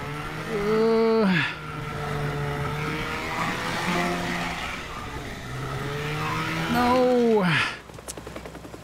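A motorboat engine roars and whines as it speeds across water.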